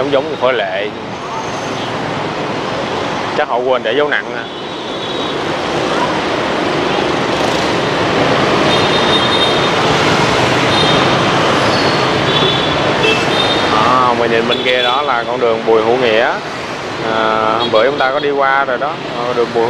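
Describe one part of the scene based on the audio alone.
Traffic hums steadily along a busy street outdoors.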